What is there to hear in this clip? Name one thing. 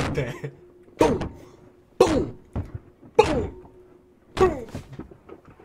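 Loud thuds of kicking bang against a car interior.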